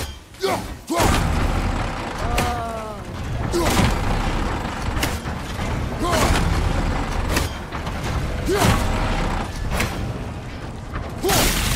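A heavy metal mechanism grinds and clanks as it turns.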